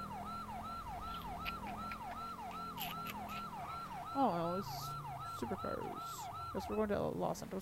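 A police siren yelps rapidly and repeatedly.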